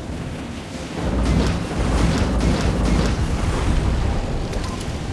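A large splash crashes loudly through the water.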